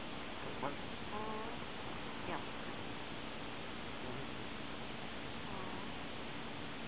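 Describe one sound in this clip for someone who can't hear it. A kitten mews softly a few times.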